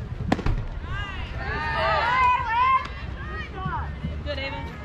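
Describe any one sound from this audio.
Girls on a field shout and cheer excitedly in the distance.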